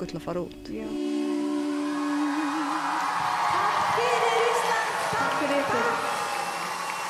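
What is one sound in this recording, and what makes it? Women sing together.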